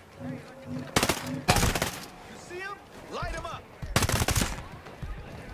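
A rifle fires sharp bursts of shots that echo outdoors.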